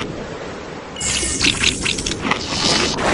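A game shark bites with wet crunching sounds.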